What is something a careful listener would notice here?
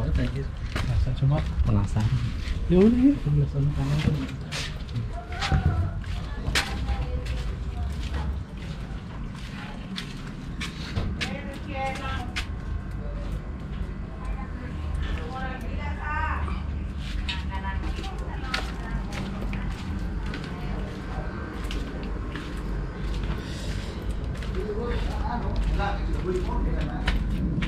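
Footsteps tap steadily on a hard, narrow path.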